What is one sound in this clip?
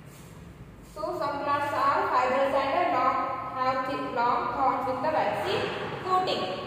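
A young woman speaks clearly and steadily, close by.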